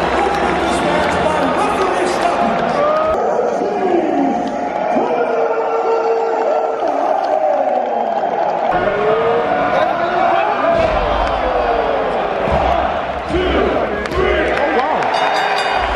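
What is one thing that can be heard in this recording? A large crowd cheers and shouts loudly in a big echoing arena.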